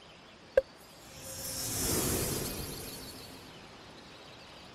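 A soft whoosh swells and fades away.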